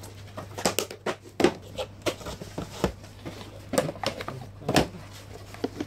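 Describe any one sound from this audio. Hands knock and rustle against a cardboard box.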